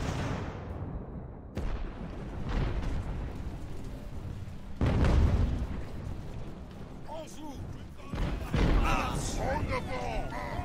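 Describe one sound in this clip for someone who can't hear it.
Muskets fire in rumbling volleys.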